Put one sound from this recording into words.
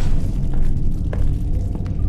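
Steam hisses softly from a pipe.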